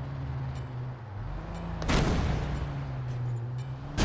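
A truck rumbles past.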